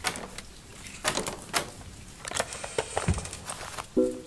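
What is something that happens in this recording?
A wooden chest lid thumps open.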